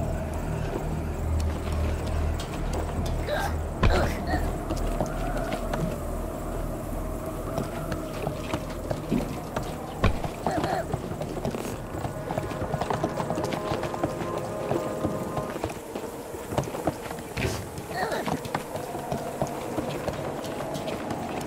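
Footsteps patter on wooden planks.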